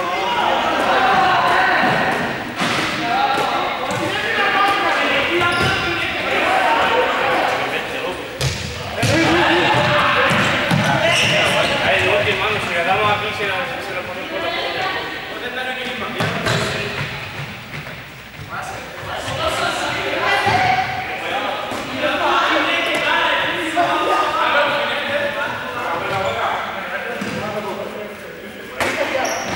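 Sneakers run and thump on a hard indoor court floor.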